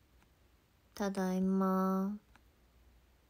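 A young woman draws out a long, steady vocal sound, close by.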